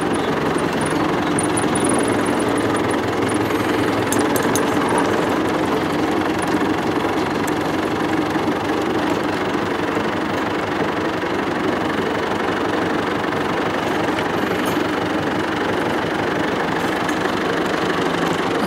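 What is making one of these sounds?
A tractor engine chugs loudly and steadily close by.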